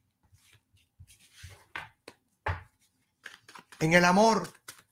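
A deck of playing cards is shuffled with soft flicks and slaps.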